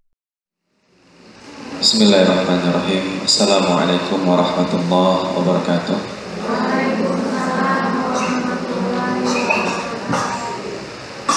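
A man speaks calmly into a microphone, like a lecturer.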